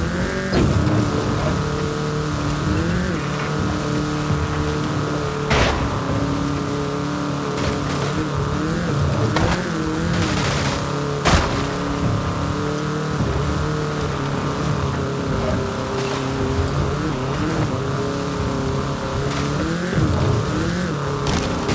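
A small car engine hums steadily at high speed.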